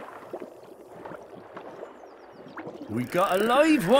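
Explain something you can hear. Water splashes as a small fish is pulled out of a pond.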